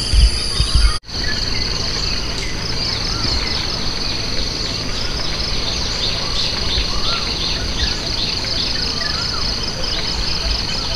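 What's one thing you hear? A river flows with a soft, steady rush.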